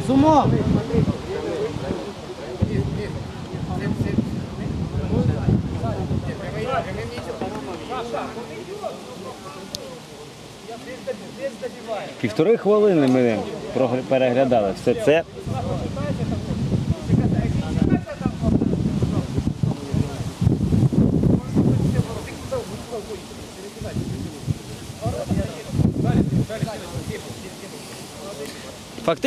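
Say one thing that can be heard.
Men talk and call out across an open outdoor pitch.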